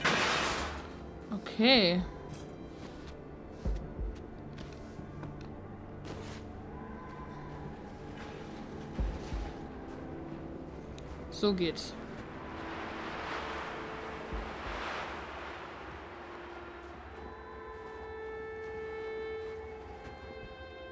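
Wind howls through a snowstorm in gusts.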